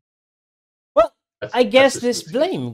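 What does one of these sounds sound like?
Adult men laugh over an online call.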